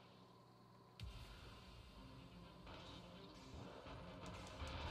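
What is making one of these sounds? Lively video game music and battle sounds play loudly.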